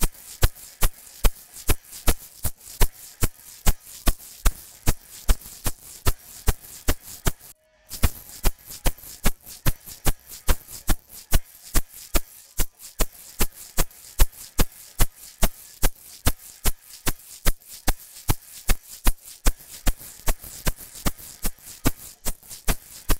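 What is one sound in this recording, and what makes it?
Record crackle pops and clicks at a steady, quick pace.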